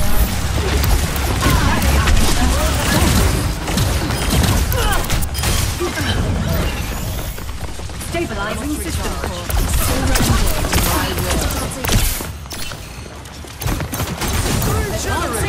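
Energy weapons fire in rapid bursts and blasts.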